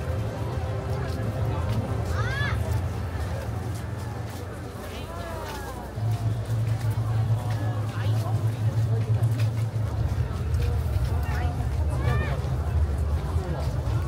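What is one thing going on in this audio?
A large crowd of men and women chatters and murmurs all around outdoors.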